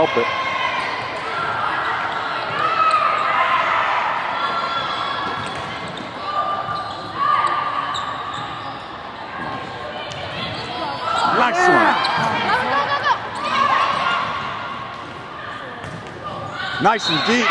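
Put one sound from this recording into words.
A volleyball thumps as it is hit.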